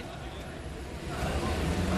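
A car engine runs as the car drives off.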